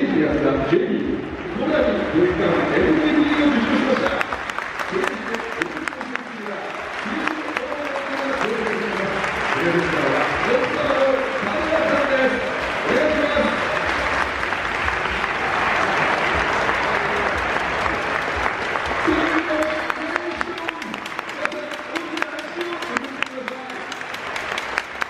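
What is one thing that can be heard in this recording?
A large stadium crowd chants and sings loudly in the open air.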